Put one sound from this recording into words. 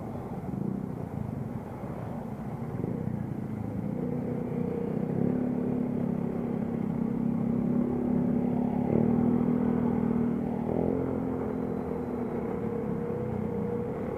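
Many motorcycles ride past nearby.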